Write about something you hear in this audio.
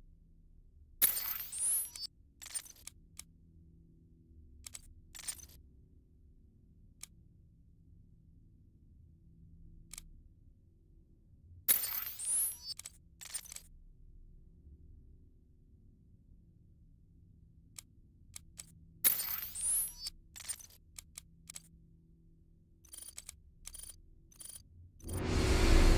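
Game menu sounds click and chime as upgrades are chosen.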